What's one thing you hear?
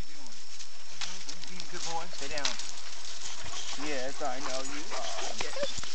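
A man talks playfully to dogs close by.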